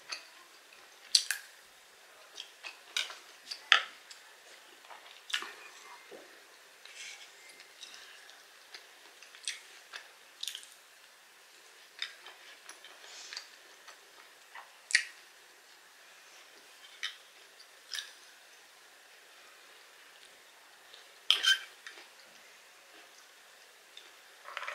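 A woman chews food with close, wet mouth sounds.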